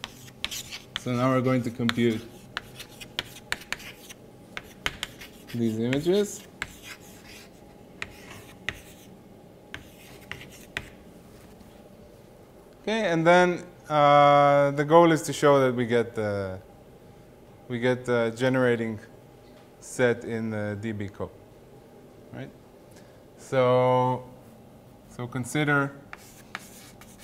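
A man speaks calmly and slowly, as if lecturing.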